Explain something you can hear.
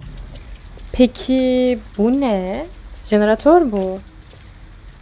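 A young woman sings out a few playful notes close to a microphone.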